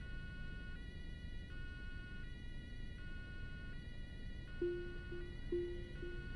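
A two-tone police siren wails steadily nearby.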